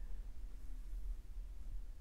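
A paintbrush scrapes softly across canvas.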